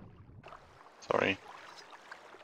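Water splashes as a swimmer breaks the surface.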